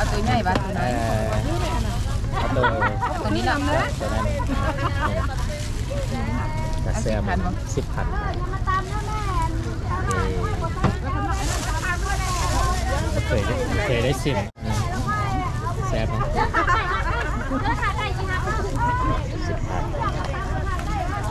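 A plastic bag rustles as it is handled up close.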